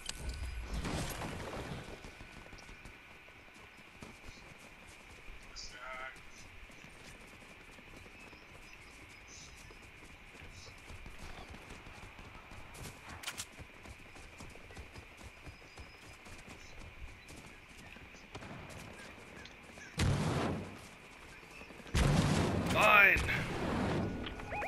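Footsteps run on grass and dirt.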